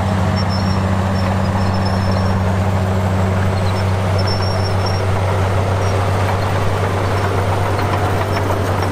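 Bulldozer tracks clank and squeak over dirt.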